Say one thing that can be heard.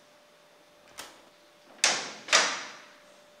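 A man knocks loudly on a wooden door.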